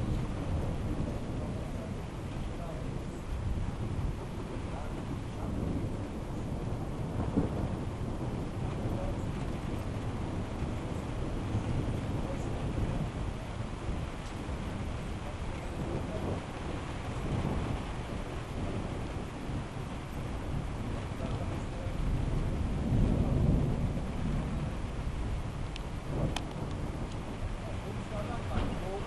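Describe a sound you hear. Tree leaves rustle and thrash in the wind.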